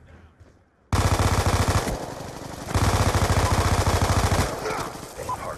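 A rifle fires rapid bursts of automatic shots.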